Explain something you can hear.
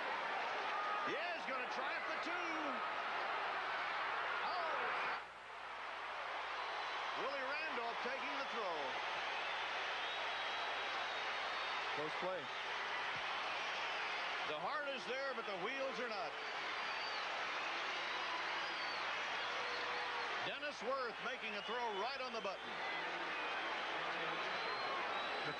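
A large crowd cheers and roars in a big open stadium.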